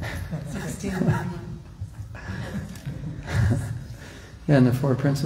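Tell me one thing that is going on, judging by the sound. An elderly woman speaks calmly through a microphone in an echoing hall.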